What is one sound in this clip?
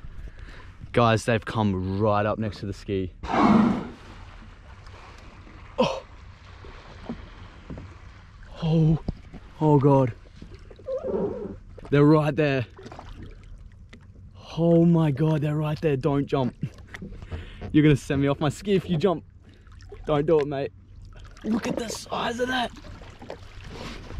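A young man talks excitedly close by, in short bursts.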